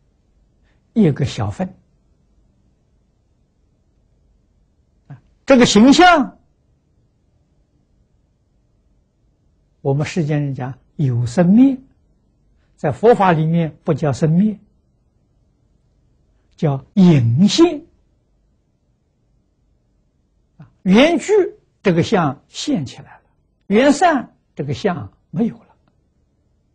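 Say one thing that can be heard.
An elderly man speaks calmly into a clip-on microphone, in short phrases with long pauses.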